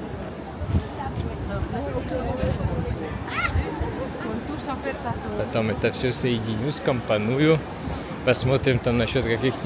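Nearby men and women talk in passing.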